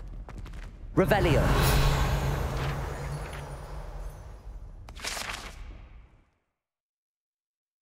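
A magical chime rings out as a page is collected.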